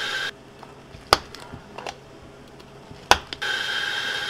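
A plastic lid snaps onto a cup.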